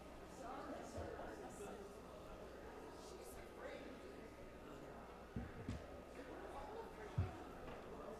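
Footsteps thud softly on a floor.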